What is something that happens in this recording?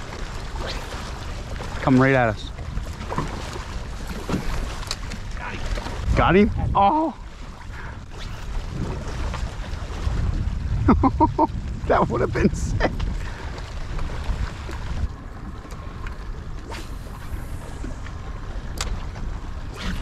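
Wind rumbles outdoors over open water.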